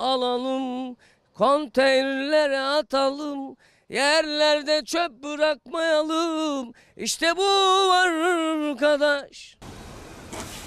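A man speaks calmly and close into a microphone.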